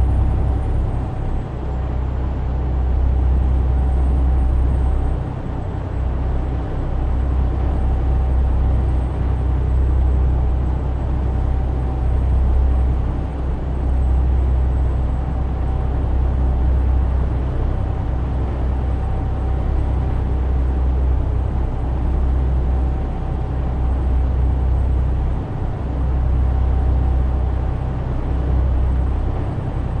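Tyres roll on a road with a steady rumble.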